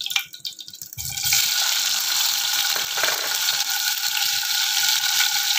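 Tofu cubes splash into hot oil and sizzle loudly.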